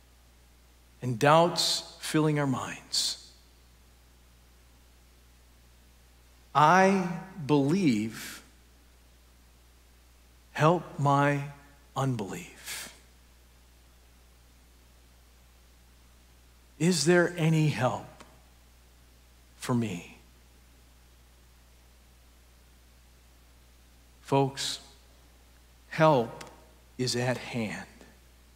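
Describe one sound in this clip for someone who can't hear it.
A middle-aged man speaks calmly through a microphone in a reverberant hall, with long pauses between phrases.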